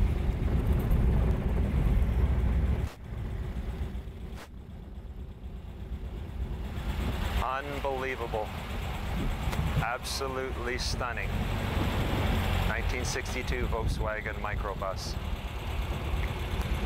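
A van engine rumbles as the van drives slowly past.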